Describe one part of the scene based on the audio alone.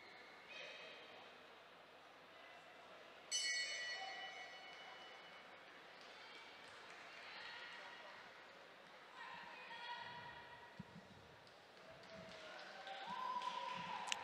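A crowd cheers and whistles in a large echoing arena.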